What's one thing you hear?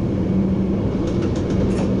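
A passing train rushes by with a whoosh.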